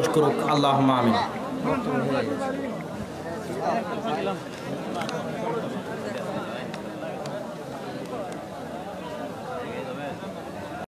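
A young man chants into a microphone, heard through loudspeakers.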